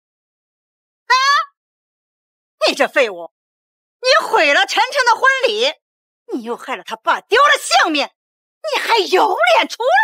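A middle-aged woman shouts angrily and scornfully.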